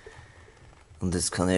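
A man speaks drowsily close by.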